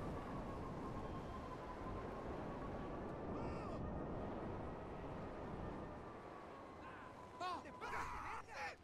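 A jet engine drones steadily with a rumbling roar, then fades away.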